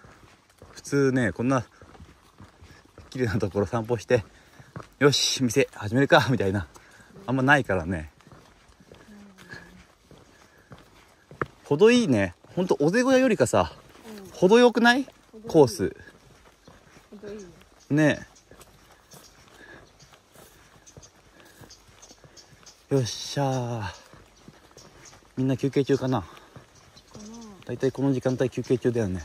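A young man talks calmly and close by, in short bursts.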